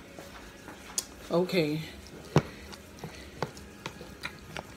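A spoon clinks and scrapes against a bowl.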